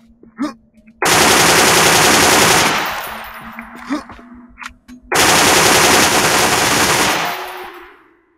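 A machine gun fires long, loud bursts.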